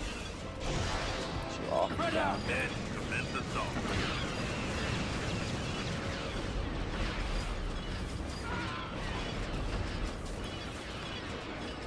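Blaster shots crack and zap in quick bursts.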